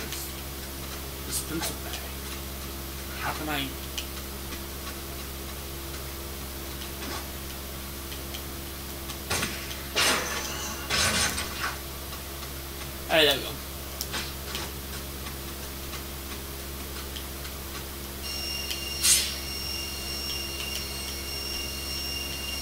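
Video game sound effects play from a television.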